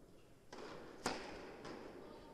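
A racket strikes a tennis ball with a sharp pop that echoes in a large hall.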